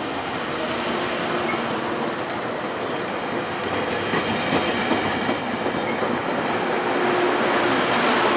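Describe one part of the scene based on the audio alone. A train rolls slowly out of a station with a rumble.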